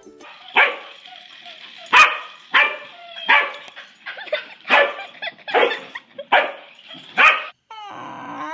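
A dog barks sharply over and over.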